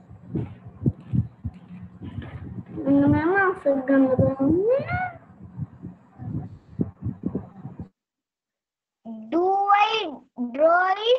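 A child speaks through an online call.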